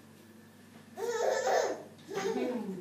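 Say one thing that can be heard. A baby babbles and squeals.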